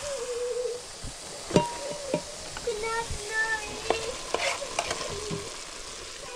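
Food sizzles and hisses in a hot pot.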